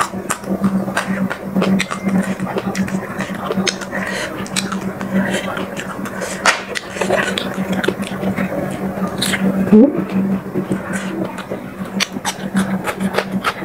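A woman chews and smacks her lips close to the microphone.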